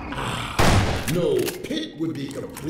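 A creature growls and snarls nearby.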